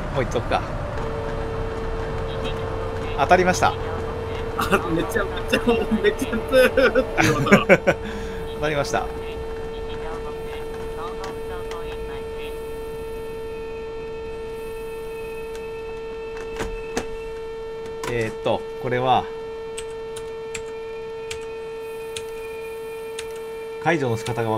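A train's electric motor hums steadily.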